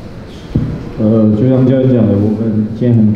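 A second young man speaks calmly into a microphone.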